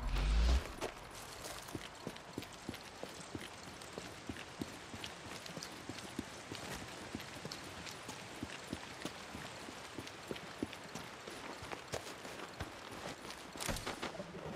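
Footsteps run quickly over pavement and gravel.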